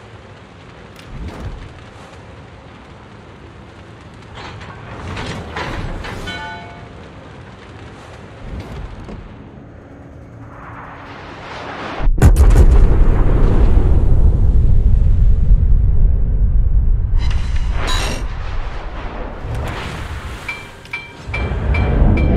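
Heavy ship guns fire with deep, rumbling booms.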